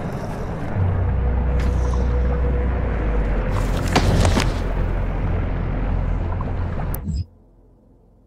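A deep, steady rumble drones, then cuts off.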